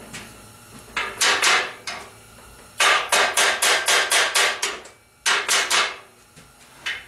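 A chipping hammer taps rapidly on metal.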